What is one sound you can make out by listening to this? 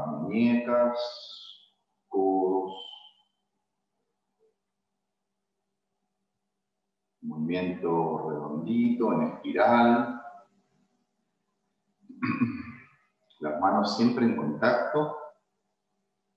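A middle-aged man speaks calmly into a close microphone, giving instructions in short phrases.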